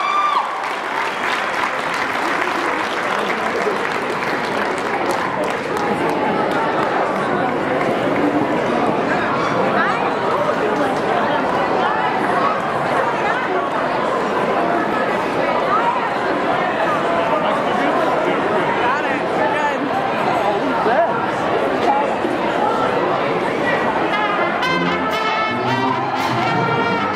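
A crowd claps and cheers loudly in a large echoing hall.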